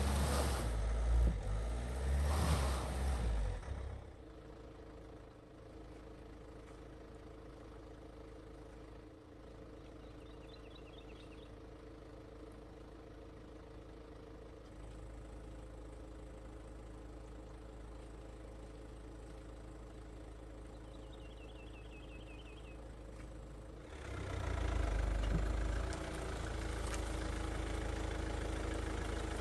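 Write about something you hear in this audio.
A car engine revs hard.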